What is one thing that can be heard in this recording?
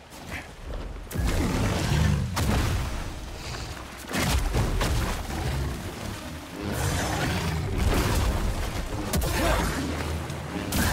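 A large beast roars and growls.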